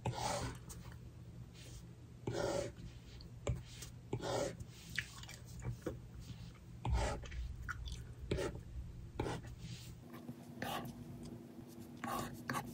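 A stylus taps and scratches on a tablet's glass surface.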